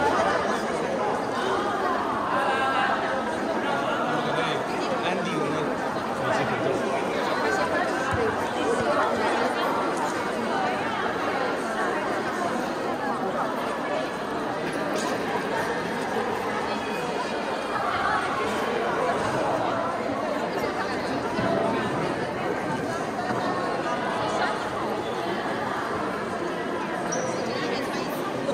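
A crowd of men and women chatter all around in a large echoing hall.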